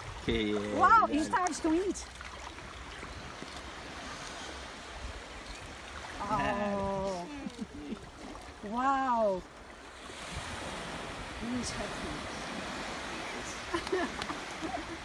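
Shallow water laps gently around legs.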